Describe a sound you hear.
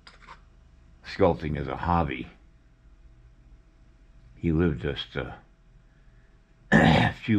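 A metal tool scrapes softly against clay.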